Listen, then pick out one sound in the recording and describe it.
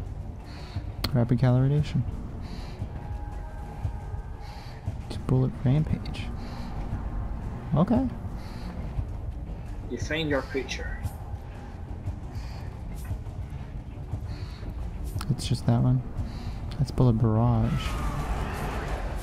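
A young man talks quietly into a microphone.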